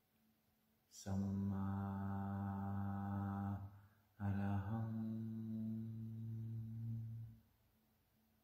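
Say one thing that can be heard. A man chants a long, low, steady tone close by, pausing once for breath.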